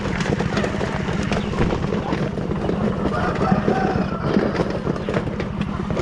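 A hand scoops grain in a plastic bucket.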